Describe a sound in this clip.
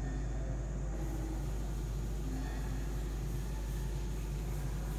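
A felt eraser rubs and swishes across a chalkboard.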